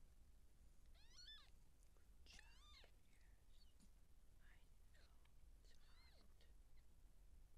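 Newborn kittens give high, thin squeaking mews.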